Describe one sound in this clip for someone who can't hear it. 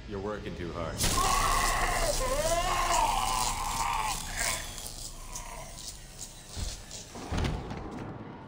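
Sparks hiss and crackle.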